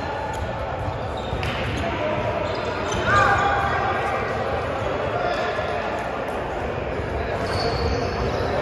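Young men talk and call out across a large echoing hall.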